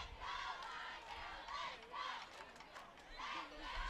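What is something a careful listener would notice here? Young women clap their hands in rhythm.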